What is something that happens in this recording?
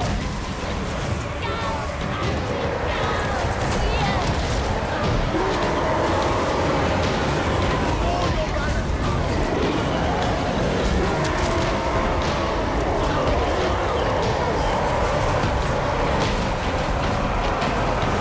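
A large crowd of warriors roars and clashes.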